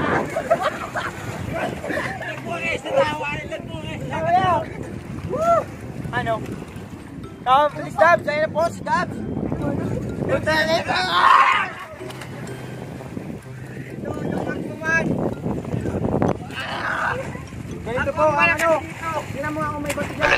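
Water splashes as a young man plunges into the sea.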